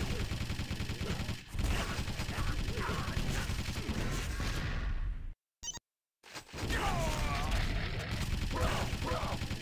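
Gunshots and explosions crack in quick bursts.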